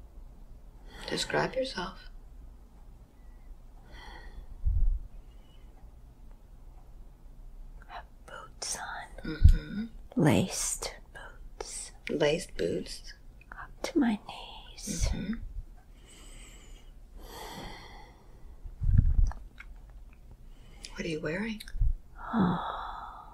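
An older woman speaks slowly in a weary, strained voice close by.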